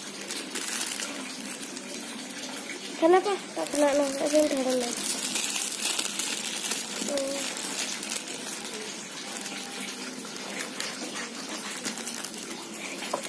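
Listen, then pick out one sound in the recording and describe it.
A plastic bag crinkles as hands squeeze it.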